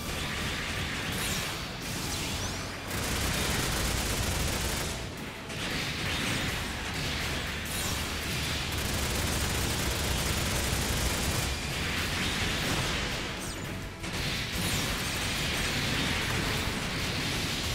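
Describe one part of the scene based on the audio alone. Laser blasts and explosions crackle rapidly in a video game battle.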